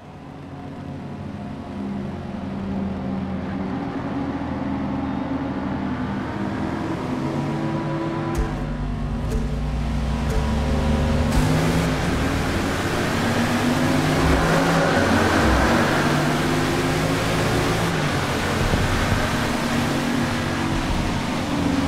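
Car engines idle and rev loudly, then roar as they accelerate.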